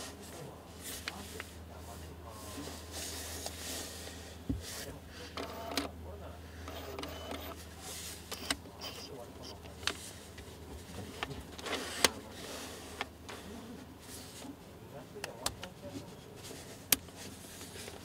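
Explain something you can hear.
A lens ring or switch clicks sharply now and then.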